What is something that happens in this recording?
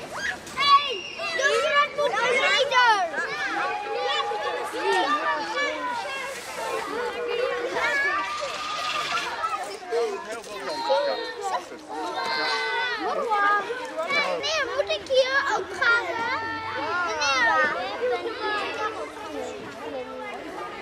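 Many young children chatter and shout excitedly close by, outdoors.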